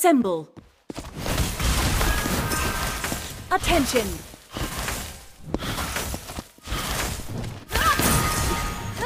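Magic blasts crackle and roar during a fight.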